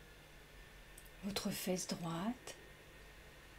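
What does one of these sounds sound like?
A young woman speaks softly and calmly into a microphone.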